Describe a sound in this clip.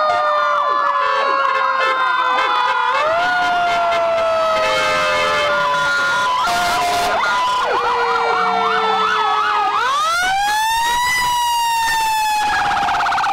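Sirens wail and whoop loudly from passing emergency vehicles.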